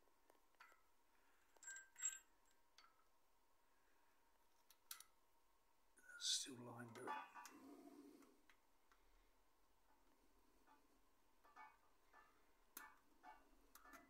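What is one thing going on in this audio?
Small metal parts click and scrape as a sprocket is fitted.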